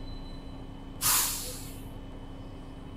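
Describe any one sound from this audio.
Bus air brakes let out a short, sharp hiss.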